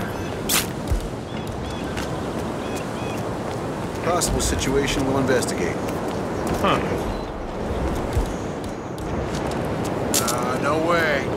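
Footsteps run quickly over a paved path.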